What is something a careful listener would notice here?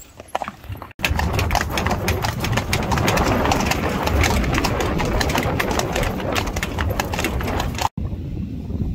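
Carriage wheels roll over a road.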